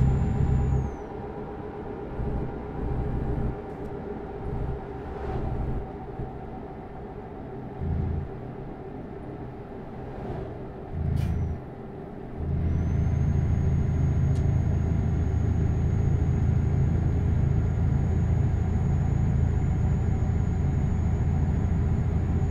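Tyres roll over a snowy road.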